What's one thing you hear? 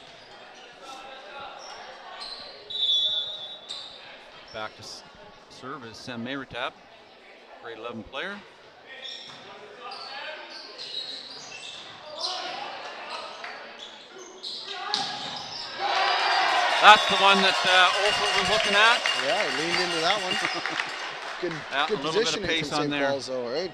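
Young players shout and call out in an echoing gym.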